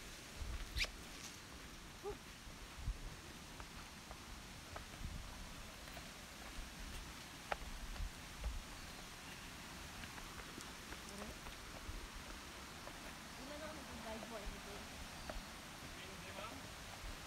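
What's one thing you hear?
Sandals slap and scuff on a dirt path as several people walk.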